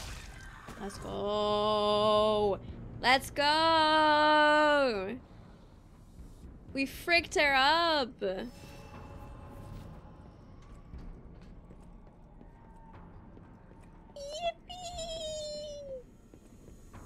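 A young woman sings and exclaims loudly into a close microphone.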